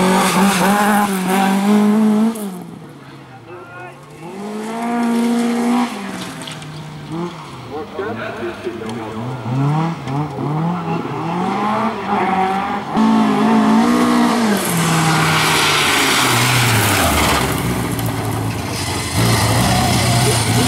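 A rally car engine revs hard, rising and falling in pitch as the car shifts gears.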